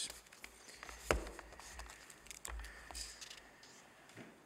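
Paper rustles and shuffles close by.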